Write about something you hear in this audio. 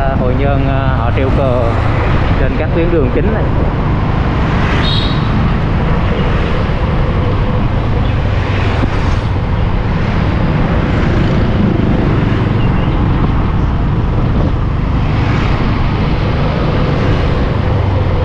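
Wind rushes steadily past as a vehicle rides along a road.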